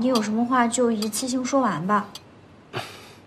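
A young woman speaks calmly and firmly, close by.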